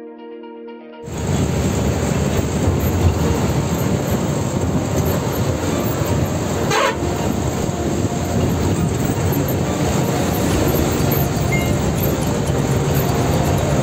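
A bus engine rumbles loudly and steadily.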